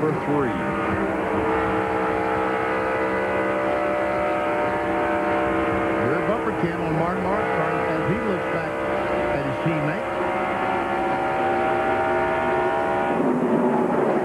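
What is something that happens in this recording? A race car engine drones steadily close by.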